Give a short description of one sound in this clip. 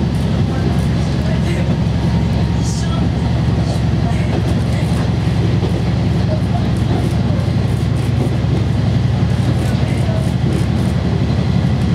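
Train wheels rumble on the rails beneath a diesel railcar.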